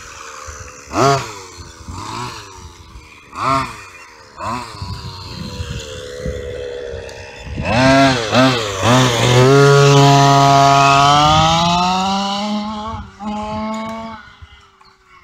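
A toy car's electric motor whines, revving up and down in rising and falling pitches.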